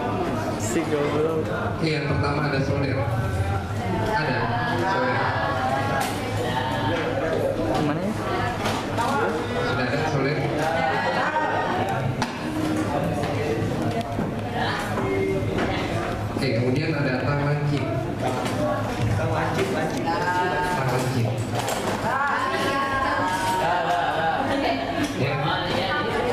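Young people chatter and talk among themselves nearby.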